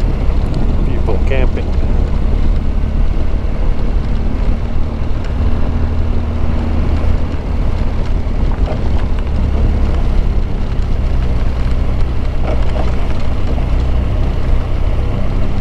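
Tyres crunch over a rough dirt road.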